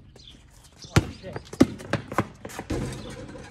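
A basketball clangs off a metal hoop.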